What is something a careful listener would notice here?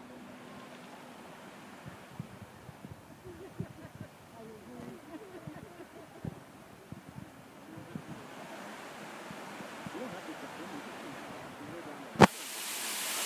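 Water splashes as a swimmer strokes through a lake.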